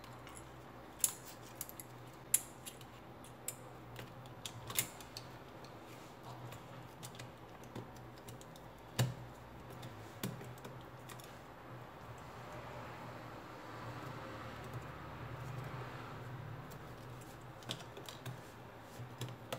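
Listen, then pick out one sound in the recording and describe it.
Fingers tap and click on small plastic and metal parts.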